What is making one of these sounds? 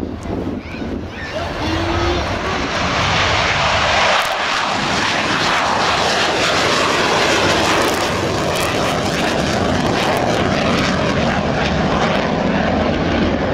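A jet engine roars loudly as a fighter plane takes off and climbs away.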